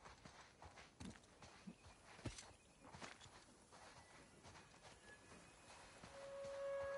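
Footsteps run quickly over soft sand.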